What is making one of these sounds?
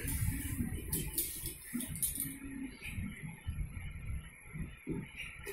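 A sewing machine stitches through fabric with a rapid mechanical whirr.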